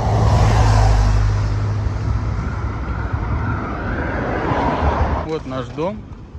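Traffic rushes past on a nearby road outdoors.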